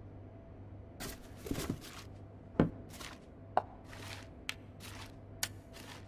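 Small objects are set down with light clicks and knocks.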